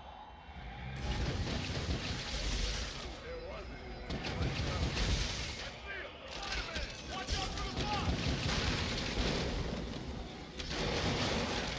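Punches and kicks thud in a close fight.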